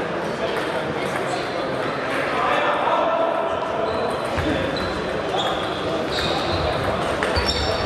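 A table tennis ball clicks back and forth off paddles and the table in a rally.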